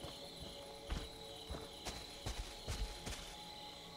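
Leaves and undergrowth rustle as a figure pushes through.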